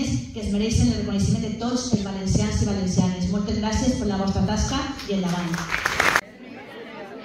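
A woman speaks clearly through a microphone in an echoing hall.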